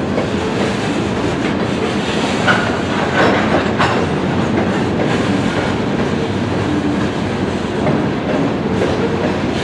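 Freight cars roll slowly past on the rails with a steady low rumble.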